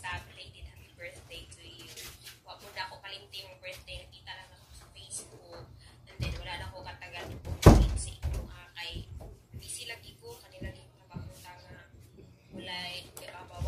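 A young woman talks through a phone's speaker, in a video call.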